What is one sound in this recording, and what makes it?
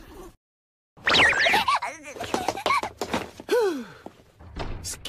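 A young girl shouts excitedly in a high voice.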